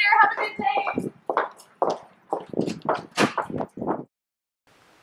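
Footsteps walk along a paved path outdoors.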